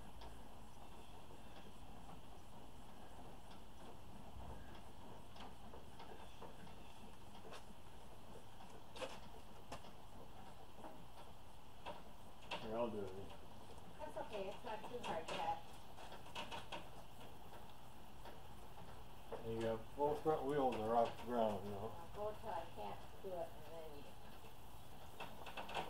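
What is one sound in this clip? A small tractor's tyres roll slowly over a concrete floor.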